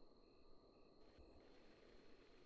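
A magic spell bursts with a sudden whoosh.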